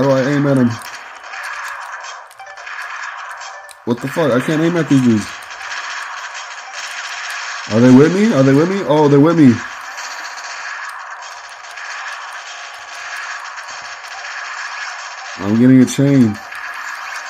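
A handheld game console plays fast game sound effects and engine noise through its small speaker.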